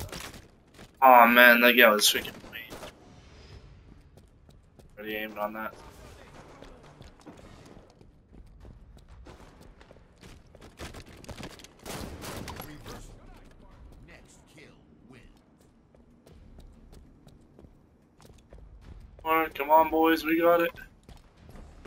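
A man shouts excitedly close to a microphone.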